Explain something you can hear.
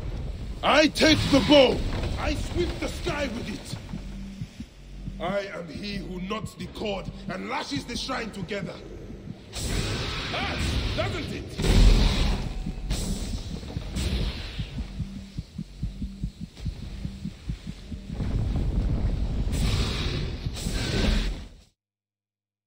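Blades clash and ring in a fight.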